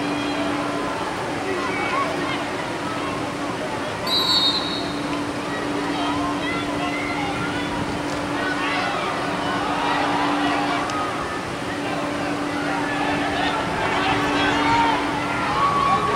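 A stadium crowd cheers and chatters outdoors.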